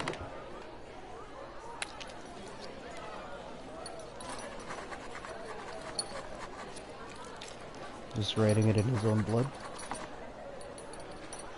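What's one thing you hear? A quill pen scratches on paper.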